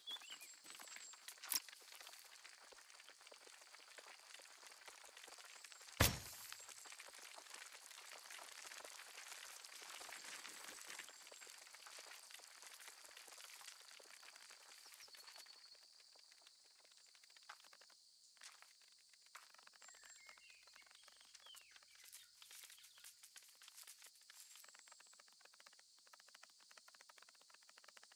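Small feet patter quickly over dry sand and gravel.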